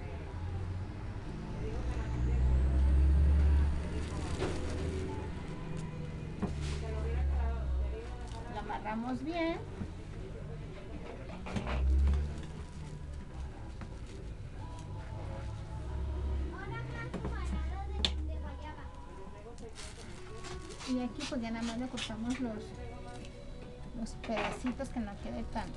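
Tulle and ribbon rustle and crinkle close by as hands tie them.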